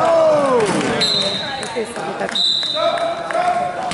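A referee's whistle blows in two short blasts.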